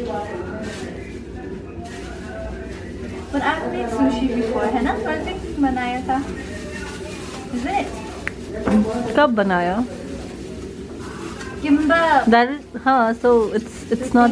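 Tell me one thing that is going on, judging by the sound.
Plastic gloves crinkle and rustle.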